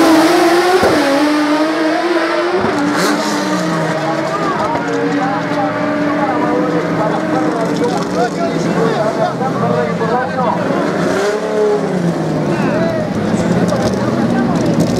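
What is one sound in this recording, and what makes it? Car engines roar loudly as two cars speed away down a track.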